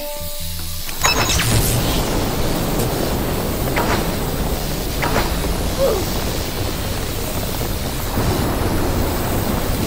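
A spray hisses steadily.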